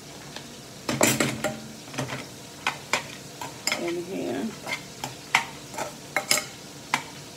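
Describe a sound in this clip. A knife scrapes and taps against a container.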